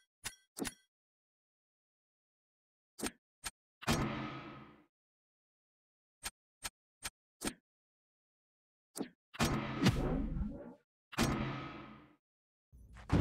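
Short game interface clicks and ticks sound one after another.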